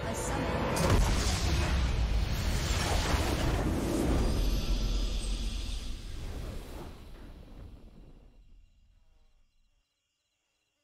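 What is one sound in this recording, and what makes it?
A triumphant game fanfare swells loudly and slowly fades away.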